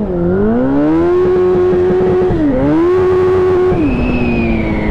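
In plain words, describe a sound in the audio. Wind rushes past as the motorcycle speeds along.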